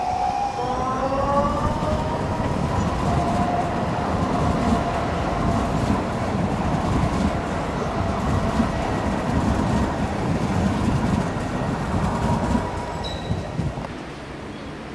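Tram wheels rumble and clatter over the rails.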